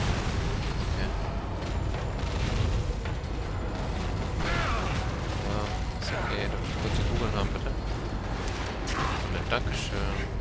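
A monster growls and shrieks up close.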